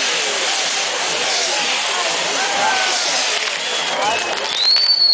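A spinning firework wheel hisses and whistles as it throws sparks.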